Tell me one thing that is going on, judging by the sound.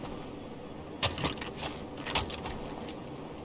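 A rifle is reloaded with sharp metallic clicks.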